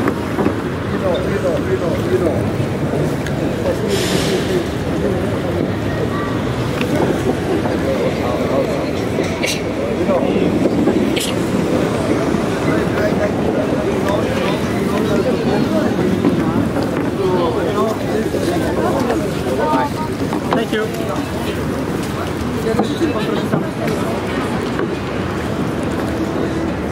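A crowd of men and women chatter nearby outdoors.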